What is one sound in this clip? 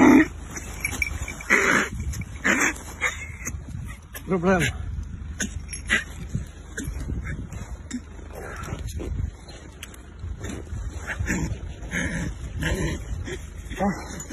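Dry grass rustles and crunches as animals scuffle on the ground.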